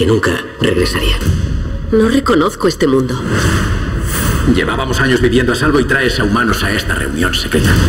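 A man speaks in a low, calm voice.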